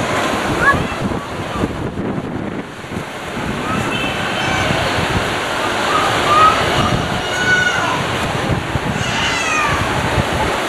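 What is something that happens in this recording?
Wind rustles through leafy trees outdoors.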